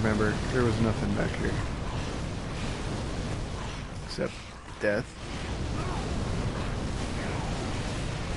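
Fire roars and whooshes.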